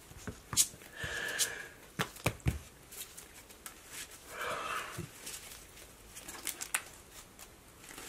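Cards rustle as a deck is shuffled.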